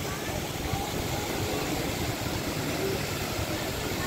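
Water splashes steadily down a fountain wall.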